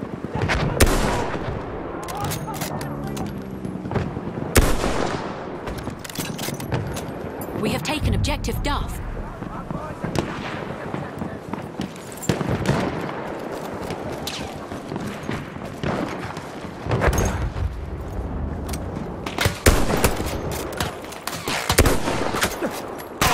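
Explosions boom in the distance.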